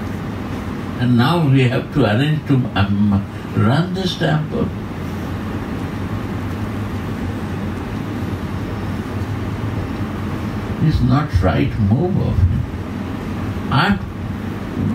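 An elderly man speaks calmly and slowly, with long pauses.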